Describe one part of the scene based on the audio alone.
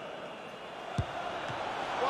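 A football is struck with a sharp thump.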